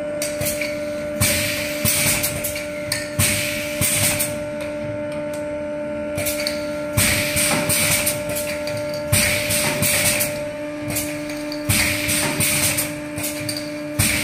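A filling machine clanks and clicks as it works.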